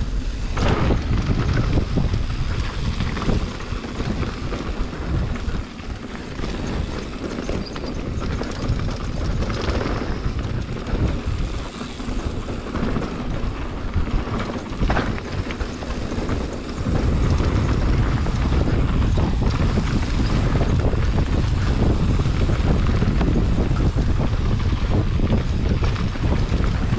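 Wind rumbles loudly past the rider.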